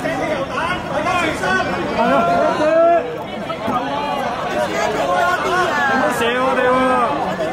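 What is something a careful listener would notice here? A crowd of men and women shout and talk over one another close by, outdoors.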